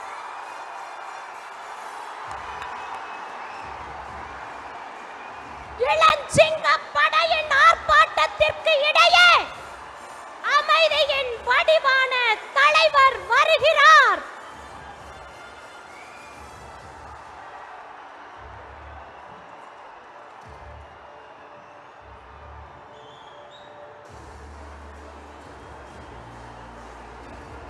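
A large crowd cheers and shouts in the distance.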